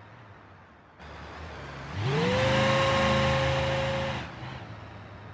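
A van engine hums and revs as the van drives along a road.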